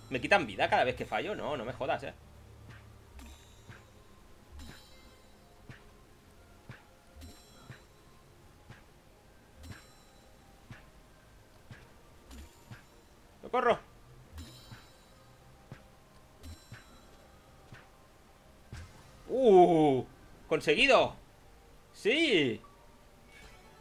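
Short game sound effects blip and pop repeatedly.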